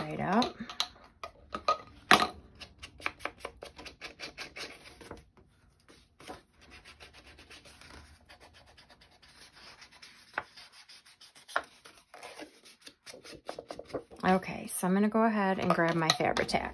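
A small tool taps and scrapes against paper on a mat.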